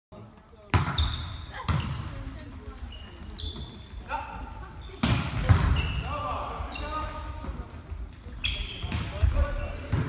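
A volleyball thuds as players hit it, echoing in a large hall.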